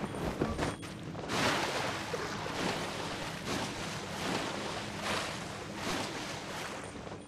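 Magic blasts burst and shatter with crackling splashes.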